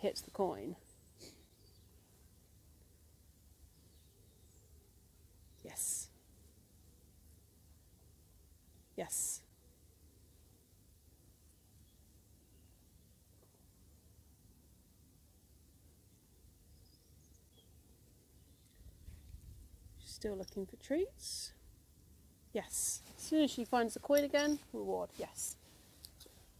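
A woman speaks softly and encouragingly to a dog, close by.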